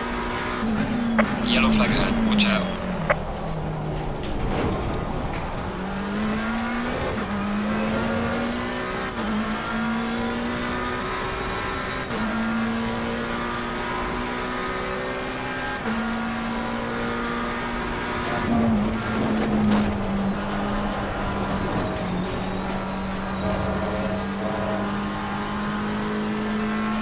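A racing car engine roars, dropping in pitch under braking and rising through the gears.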